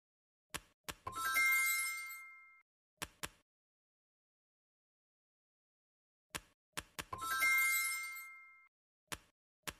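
A bright chime rings out and fades when a word is completed.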